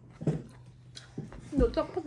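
A woman eats with loud smacking chewing sounds.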